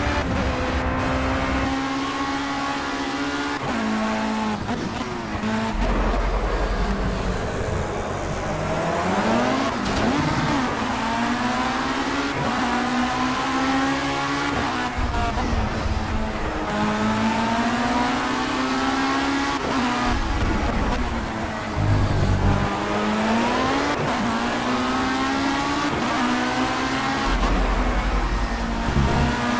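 A racing car engine whines loudly, revving up and dropping with each gear change.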